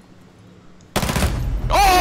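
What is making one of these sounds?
A gun fires a burst of shots at close range.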